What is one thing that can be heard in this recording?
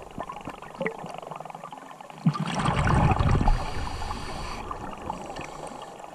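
Crackling and muffled rumbling fill the water underwater.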